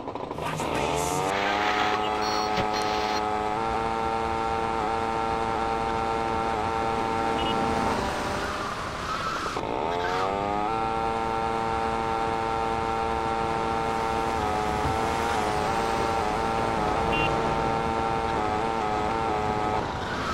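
A scooter engine buzzes steadily, revving up and easing off.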